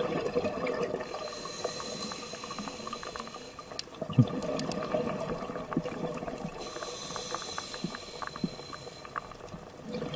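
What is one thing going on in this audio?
Air bubbles gurgle and rush upward underwater in bursts.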